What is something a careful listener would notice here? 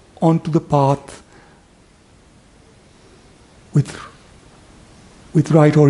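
A man speaks calmly through a headset microphone, in short bursts with pauses.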